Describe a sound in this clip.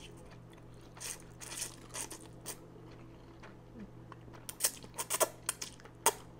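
A woman chews and smacks her lips wetly close to a microphone.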